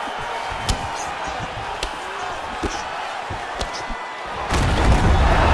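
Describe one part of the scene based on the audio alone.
Punches thud against a fighter in quick blows.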